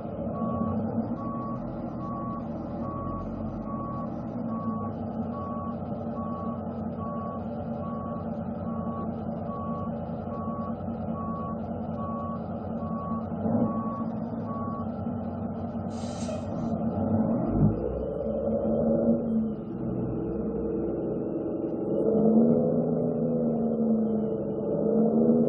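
A truck engine rumbles steadily through loudspeakers, rising in pitch now and then.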